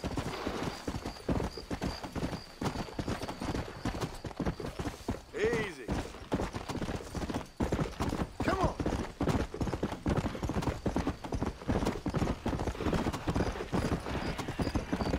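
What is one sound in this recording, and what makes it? Horse hooves thud quickly on dry ground at a gallop.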